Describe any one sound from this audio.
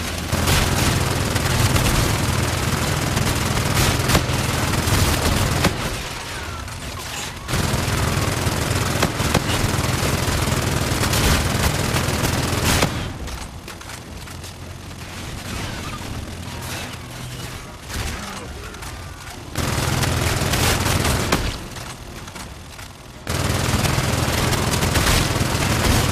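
A game's gun fires rapid bursts with loud blasts.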